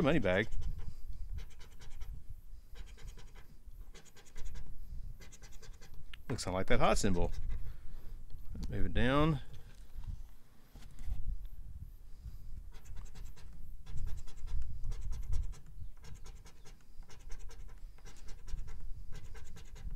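A coin scratches rapidly across a card.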